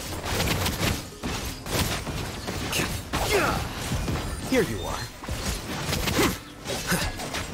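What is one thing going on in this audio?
A blade whooshes through the air in swift slashes.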